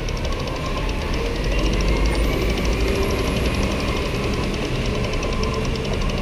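A heavy truck rumbles by.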